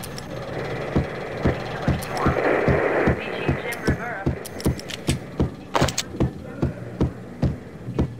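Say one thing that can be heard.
Footsteps thud on a hard floor at a steady pace.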